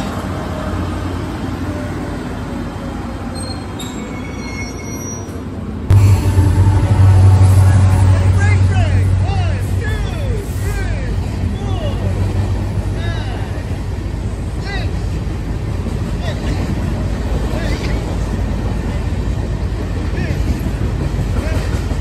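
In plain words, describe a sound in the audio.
A locomotive engine rumbles and idles close by.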